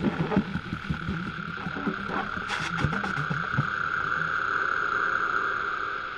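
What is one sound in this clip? A bass saxophone plays low, short notes close by.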